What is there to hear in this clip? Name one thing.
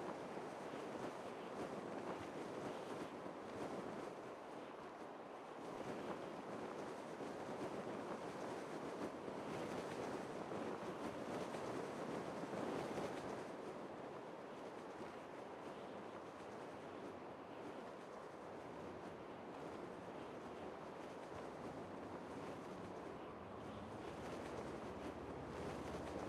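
Wind rushes steadily past a parachute gliding through the air.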